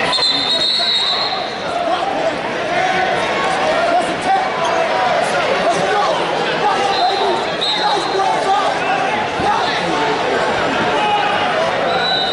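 A crowd murmurs and shouts throughout a large echoing hall.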